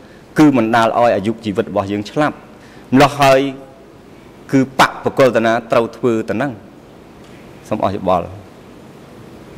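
A man speaks calmly into a microphone, close by, in short phrases.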